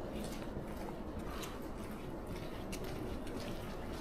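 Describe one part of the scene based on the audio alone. Footsteps tap on wet paving nearby.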